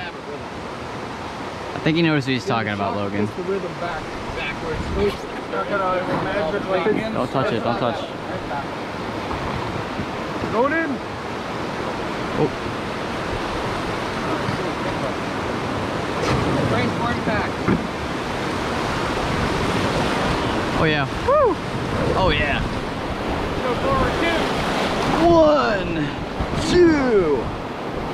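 River rapids rush and roar steadily, growing louder.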